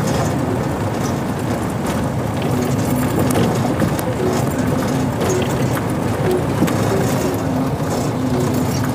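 Strong wind buffets outdoors with a loud rumble.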